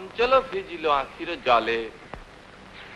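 A young woman calls out loudly, heard through an old, hissy recording.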